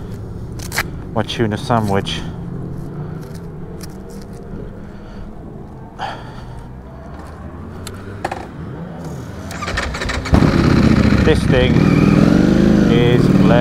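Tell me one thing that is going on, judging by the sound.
A motorcycle engine idles and then revs up loudly as the bike pulls away.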